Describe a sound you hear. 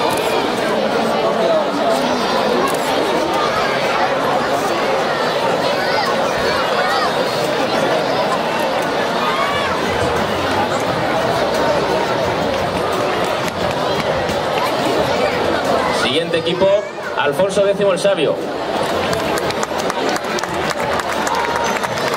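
A crowd of children and adults chatters noisily outdoors.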